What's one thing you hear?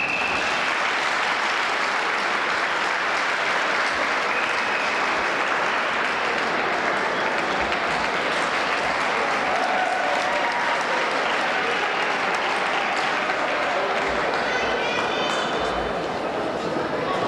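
A crowd cheers and shouts loudly in a large echoing gym.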